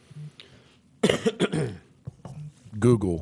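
A younger man speaks into a close microphone.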